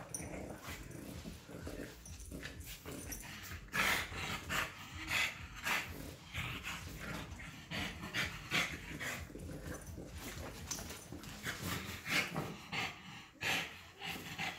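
A puppy and a French bulldog growl while play-fighting.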